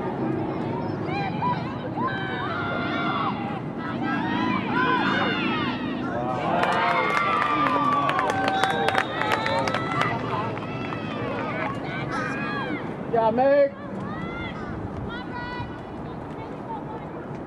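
Young women shout and cheer across an open field outdoors.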